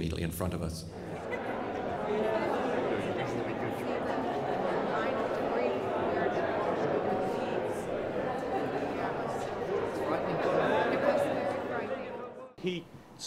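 A crowd of people chatter in a busy hall.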